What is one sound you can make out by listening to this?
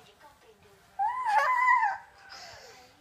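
A small boy giggles close by.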